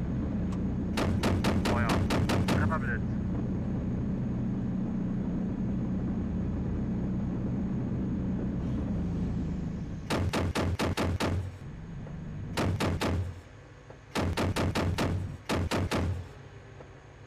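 A heavy cannon fires in rapid bursts.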